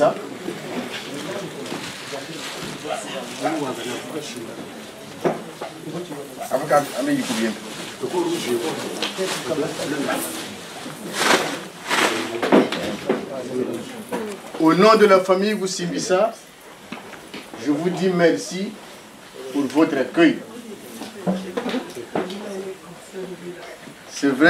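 A man speaks into a microphone with animation, heard over loudspeakers in an echoing room.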